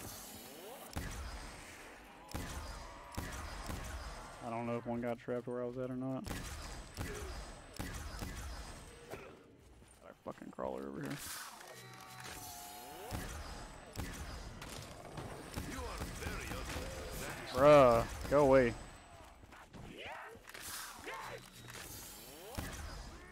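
A ray gun fires in quick, sharp blasts.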